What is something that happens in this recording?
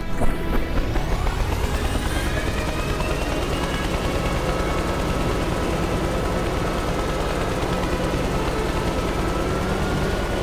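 Helicopter rotor blades thud rapidly and steadily.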